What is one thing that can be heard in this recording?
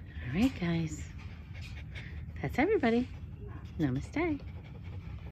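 A small dog whines in short, rising, sing-song cries close by.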